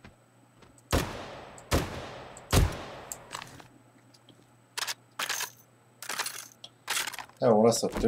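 A rifle fires several loud shots.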